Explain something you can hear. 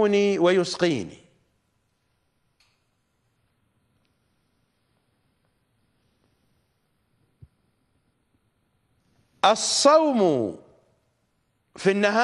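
A middle-aged man speaks emphatically into a close microphone, with long pauses.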